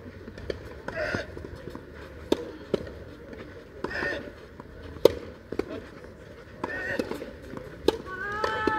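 Tennis rackets strike a ball with sharp pops in a steady rally.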